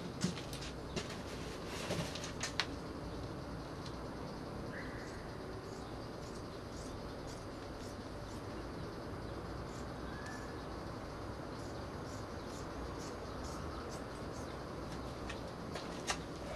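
Plastic sheeting crinkles and rustles under a man's hands.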